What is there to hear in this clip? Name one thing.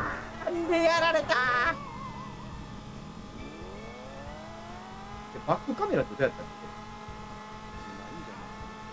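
Toy-like kart engines hum steadily.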